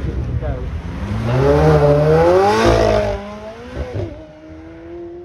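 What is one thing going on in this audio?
A sports car engine revs hard and roars past.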